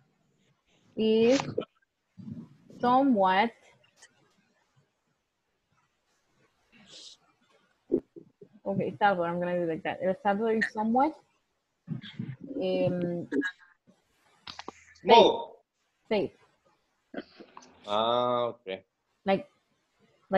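A woman speaks slowly and clearly over an online call.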